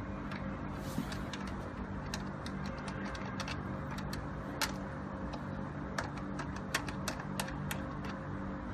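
Switches on a device click sharply a few times.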